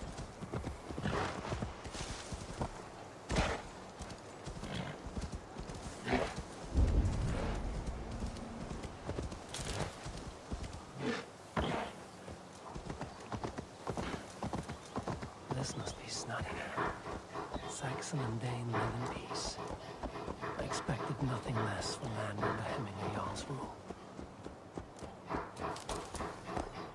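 A horse's hooves crunch steadily through snow.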